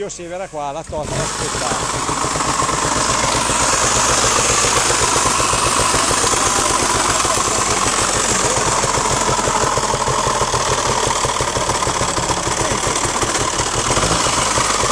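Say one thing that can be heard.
A motorcycle engine runs loudly at a fast idle.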